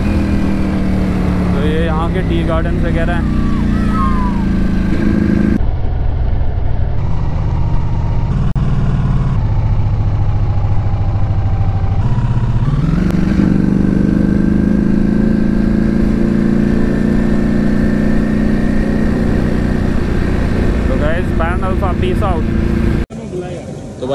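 A motorcycle engine hums steadily and revs up as the bike rides along.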